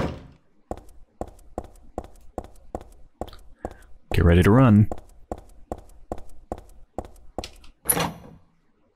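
Footsteps run quickly down hard stairs, echoing.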